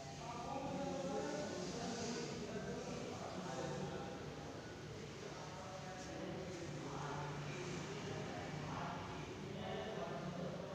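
A man speaks calmly and steadily in a room with some echo.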